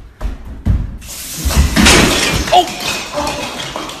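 A Christmas tree crashes to the floor.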